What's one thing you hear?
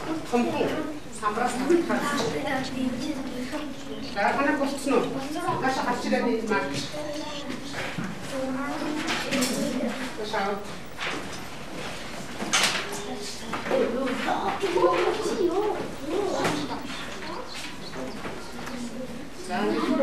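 A woman speaks calmly to a class.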